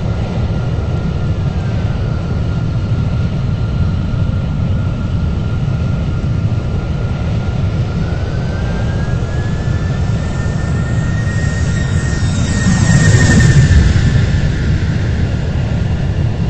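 A jet airliner's engines roar steadily as it speeds down a runway.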